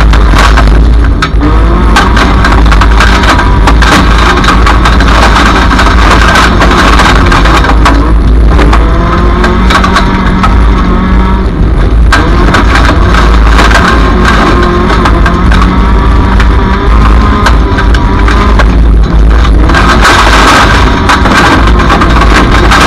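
A race car engine roars loudly and revs up and down.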